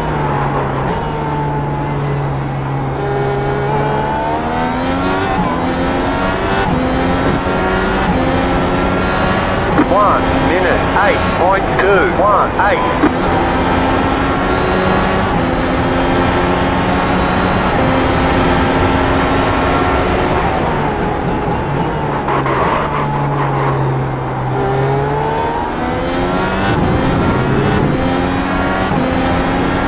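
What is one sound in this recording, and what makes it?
A racing car engine roars and revs up through the gears, then drops as it brakes.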